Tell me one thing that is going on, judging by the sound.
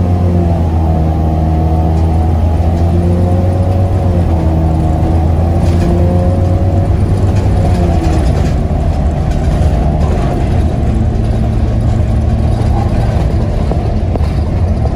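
A bus engine hums loudly and steadily while driving.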